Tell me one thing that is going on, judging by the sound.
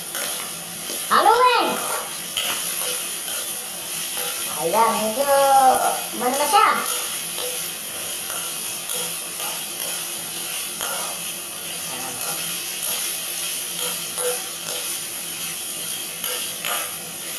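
A metal spatula scrapes and clatters against a wok.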